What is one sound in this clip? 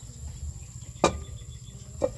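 A metal lid clanks onto a pan.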